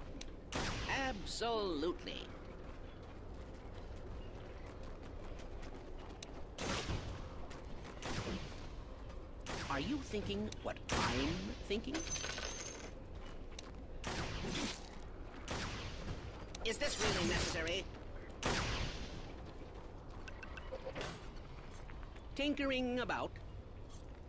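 Game spell effects whoosh and zap in bursts.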